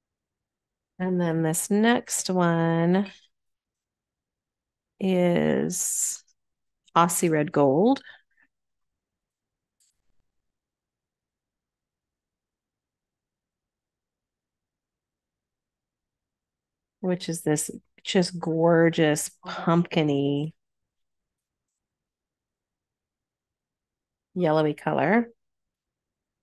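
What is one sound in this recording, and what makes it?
A woman talks calmly over an online call, in short bursts.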